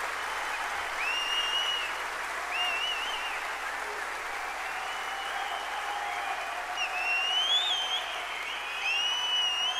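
A large crowd applauds and cheers loudly in a big hall.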